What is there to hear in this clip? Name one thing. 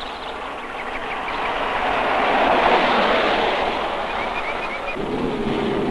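A car approaches and rushes past.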